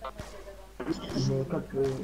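A gun fires a few sharp shots.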